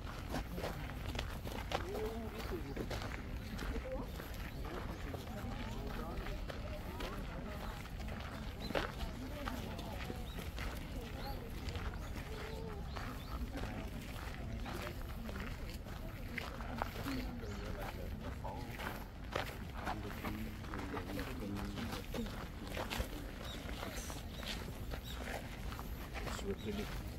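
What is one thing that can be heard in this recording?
Several people talk at a distance outdoors.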